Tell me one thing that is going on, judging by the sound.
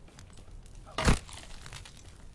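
An axe strikes wood with a heavy thud.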